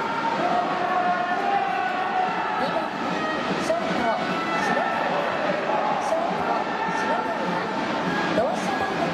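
A large crowd chants and cheers steadily in a stadium.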